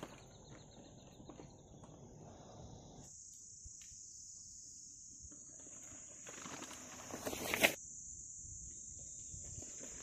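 A bicycle rolls over grass and dry ground nearby.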